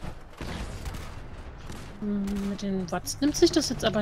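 An explosion booms, followed by crackling fire.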